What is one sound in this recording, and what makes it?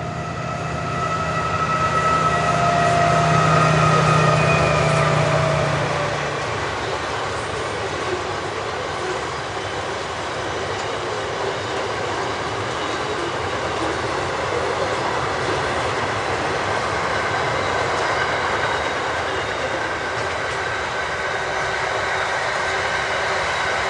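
A long freight train's wagons clatter and rumble along the rails.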